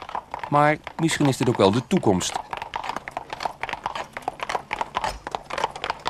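A wooden cart rattles along.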